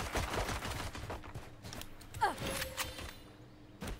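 A pistol is drawn with a short metallic click.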